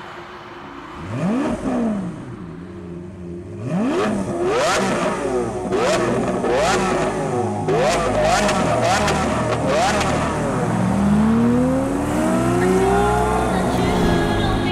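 A sports car engine revs hard, climbing and dropping in pitch again and again.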